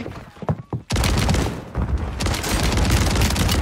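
An automatic shotgun fires in rapid blasts.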